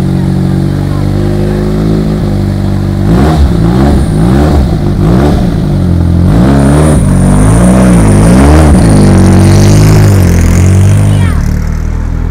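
A race car engine idles loudly and revs up repeatedly.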